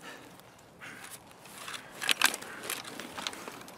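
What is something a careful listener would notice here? A rifle clatters as it is swapped and raised.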